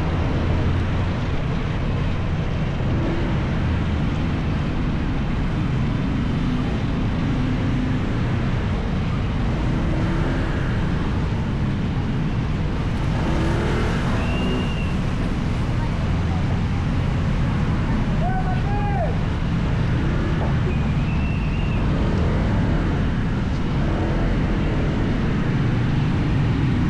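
Traffic rumbles all around on a busy street.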